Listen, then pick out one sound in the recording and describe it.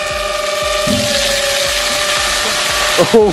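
A large mass of water gushes out and splashes onto the ground.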